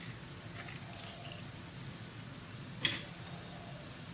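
An eggshell cracks and breaks apart over a glass bowl.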